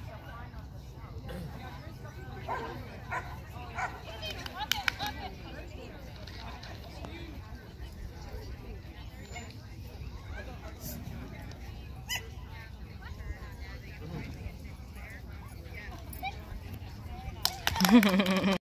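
A woman calls out commands to a dog nearby, outdoors.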